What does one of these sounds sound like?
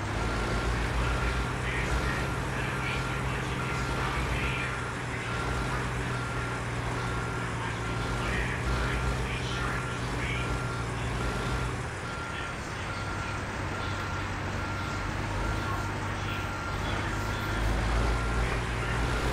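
A heavy truck engine rumbles steadily at idle.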